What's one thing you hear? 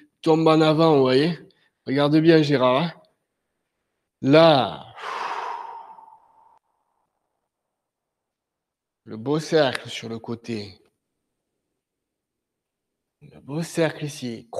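A man speaks in short calm phrases with pauses.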